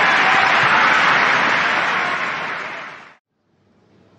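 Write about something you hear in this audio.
A crowd applauds loudly, then the applause fades out.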